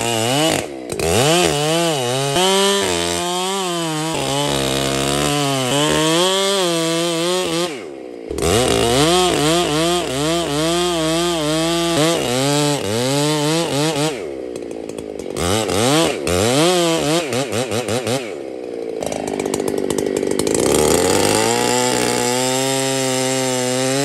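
A chainsaw engine roars and whines as it cuts into a tree trunk, its pitch rising and falling.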